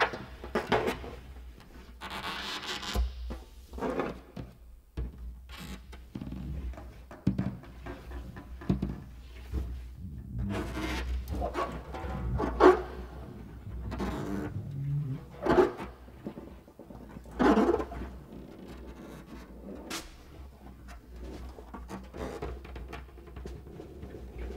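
A large drum is struck and rubbed, booming and rumbling.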